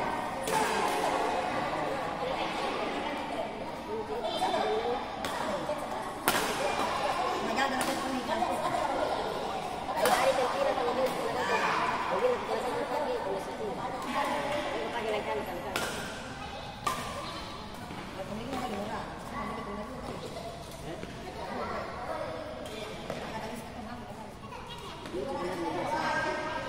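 Young women talk and call out during play.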